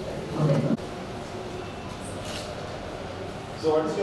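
A woman speaks calmly in a room.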